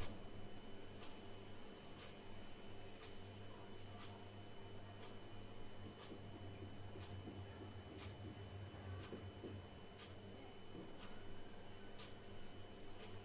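A clay pot simmers with faint, gentle bubbling.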